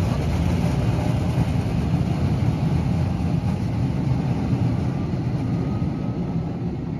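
A tram rolls away along the rails, its rumble slowly fading.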